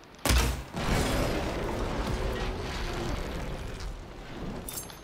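An explosion booms and rumbles away.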